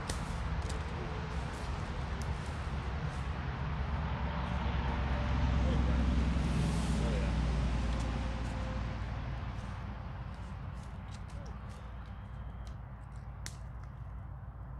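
A campfire crackles and pops close by.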